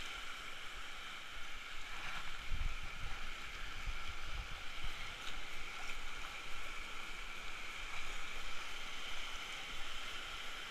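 Waves wash and churn steadily close by.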